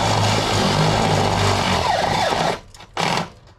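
A power drill whirs as it bores through sheet metal.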